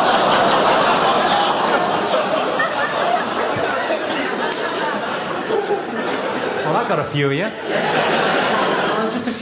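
A large audience laughs loudly in a big hall.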